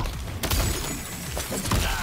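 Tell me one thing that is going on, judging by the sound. Ice shatters with a sharp crash.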